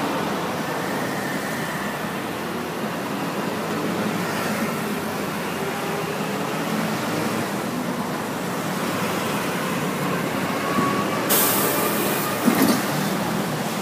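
Motorcycles pass by with droning engines.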